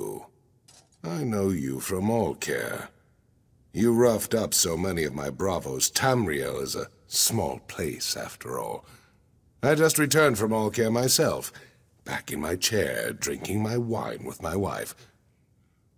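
A man speaks calmly and clearly in a low voice, close by.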